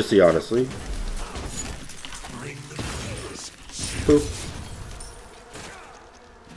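Game effects whoosh and clash.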